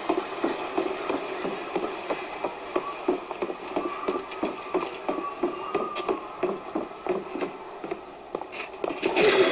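Footsteps thud steadily on wooden boards.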